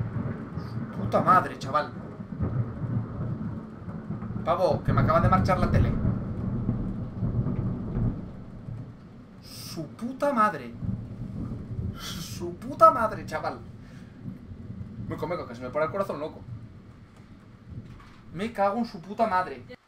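A young man talks with animation into a nearby microphone, in short bursts.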